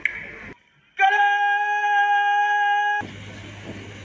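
A man calls out a long drawn-out command through a loudspeaker.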